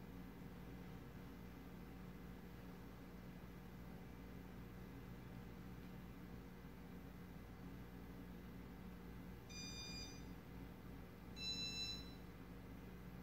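A ceiling fan hums steadily as its blades spin.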